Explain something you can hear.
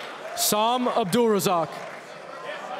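A crowd of young men shouts and whoops loudly in a large hall.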